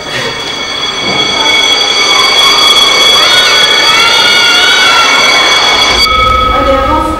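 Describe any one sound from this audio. Children chatter in a large echoing hall.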